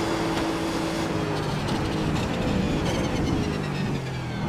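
A race car engine blips and crackles as it shifts down through the gears.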